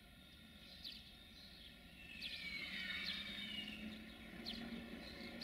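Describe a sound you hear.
An electric locomotive rolls slowly closer with a low hum.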